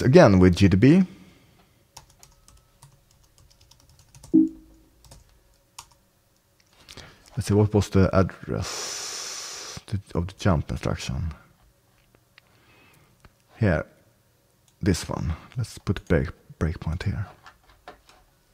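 A man talks calmly and close into a headset microphone, in short bursts with pauses.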